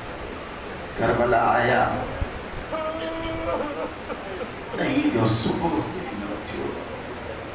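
A man chants loudly through a microphone in an echoing hall.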